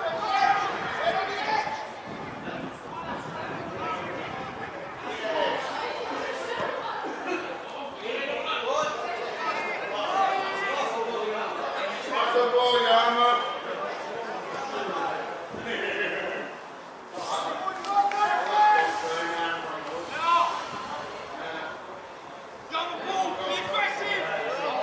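Men standing nearby talk and call out close by.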